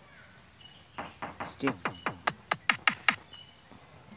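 A kick drum sample thumps several times in quick succession.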